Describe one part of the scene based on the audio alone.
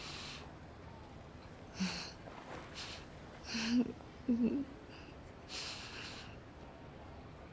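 A young woman sobs and sniffles quietly close by.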